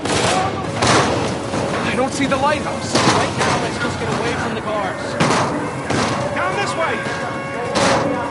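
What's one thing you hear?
Footsteps clatter across a sheet metal roof.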